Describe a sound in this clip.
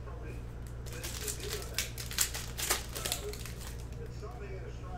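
Plastic card wrappers crinkle and rustle in hands.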